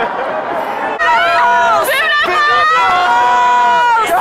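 A crowd of young men and women cheers and shouts loudly outdoors.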